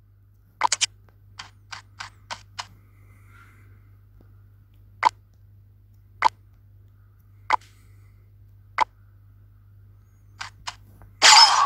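Game menu chimes click as skills are picked.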